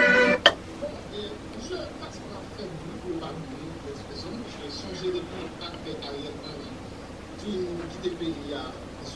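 A young man speaks calmly and close into a microphone.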